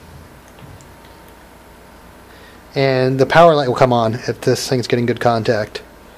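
A metal clamp clicks onto a battery terminal.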